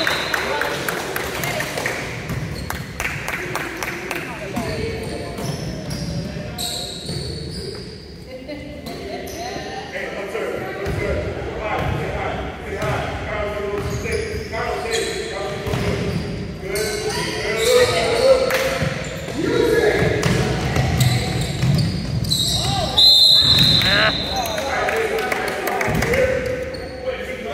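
Children and adults chatter and call out around the court.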